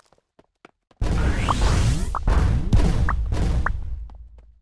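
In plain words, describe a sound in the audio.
A loud rushing game effect roars as the crowd smashes through obstacles.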